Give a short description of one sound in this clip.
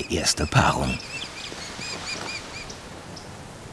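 An osprey calls with sharp, repeated chirps.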